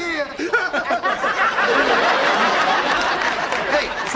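A crowd of people laughs loudly.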